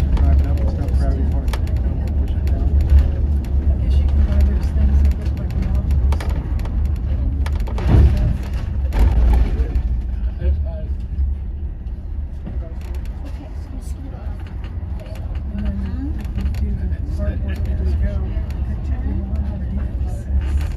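A bus engine rumbles steadily from inside the vehicle.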